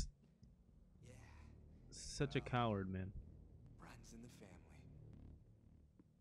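A man speaks with a strained, mocking voice, close to the microphone.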